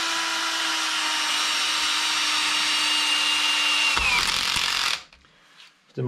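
A cordless drill whirs steadily, then winds down.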